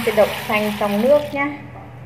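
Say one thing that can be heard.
Grains pour into a metal bowl.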